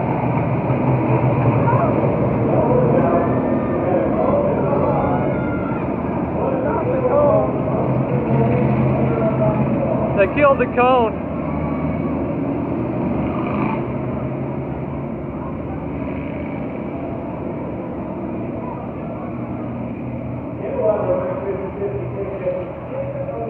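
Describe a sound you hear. Race car engines roar and drone around a track.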